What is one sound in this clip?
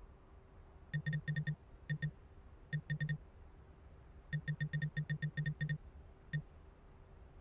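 Short electronic beeps tick quickly as a game menu scrolls.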